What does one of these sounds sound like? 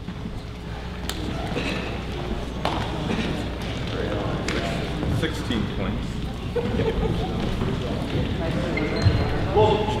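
A crowd of people chatters and murmurs in a large echoing hall.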